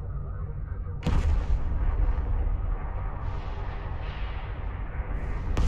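A loud explosion bursts and rumbles.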